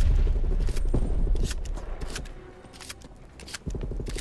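A rifle's magazine clicks and rattles as it is reloaded.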